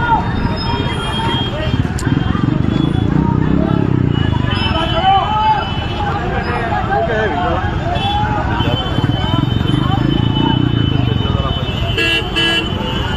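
Motorbike and scooter engines idle and rumble in heavy street traffic outdoors.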